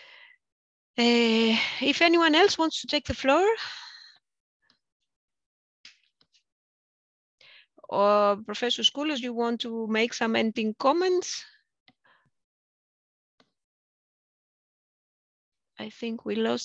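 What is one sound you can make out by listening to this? A woman speaks calmly over an online call, in bursts with pauses.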